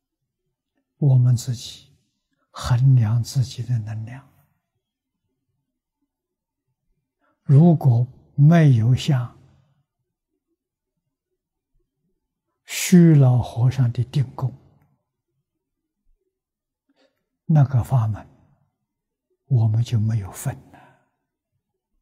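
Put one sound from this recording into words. An elderly man speaks calmly and slowly into a close microphone, in short phrases with long pauses.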